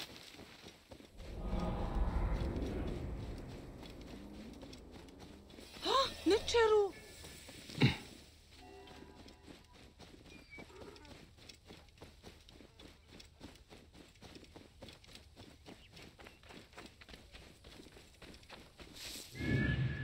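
Footsteps run quickly over dry grass and sandy ground.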